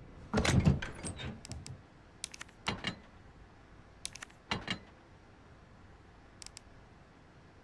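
Short menu clicks and swishes sound now and then.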